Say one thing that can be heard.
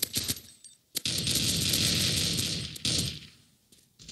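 A rifle fires a rapid burst of automatic gunfire.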